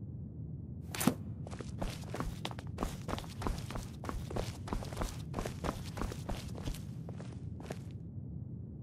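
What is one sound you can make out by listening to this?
Footsteps tap on a stone floor in an echoing hall.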